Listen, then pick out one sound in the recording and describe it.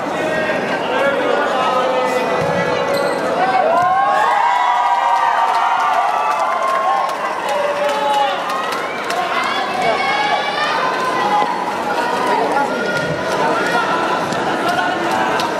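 A large crowd cheers and shouts loudly in an echoing hall.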